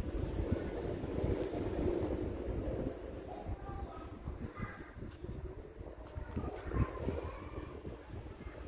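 Fur rustles against fabric close by.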